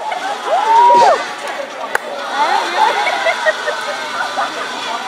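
A crowd of children shouts and cheers outdoors.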